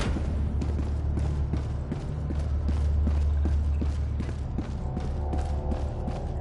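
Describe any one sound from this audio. Heavy footsteps clank on a metal floor at a steady pace.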